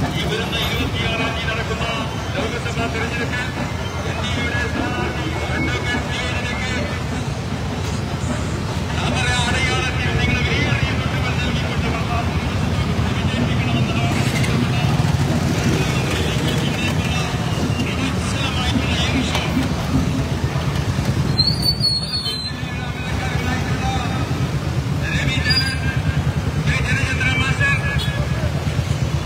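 Men chant and shout together in a crowd.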